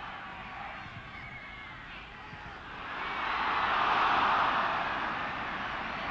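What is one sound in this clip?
A large stadium crowd roars, swelling loudly and then easing slightly.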